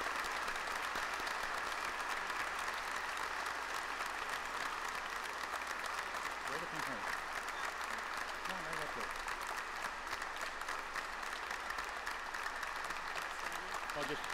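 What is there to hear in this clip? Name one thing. People murmur softly in a large echoing hall.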